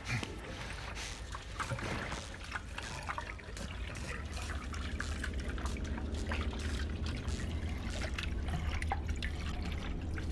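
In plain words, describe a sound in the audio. A hand pump creaks and clanks as it is worked.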